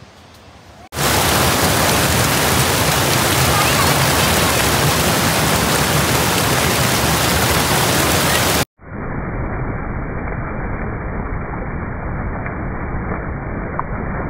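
Fast water rushes loudly over rocks.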